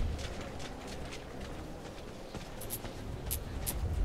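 Footsteps crunch slowly on rough ground.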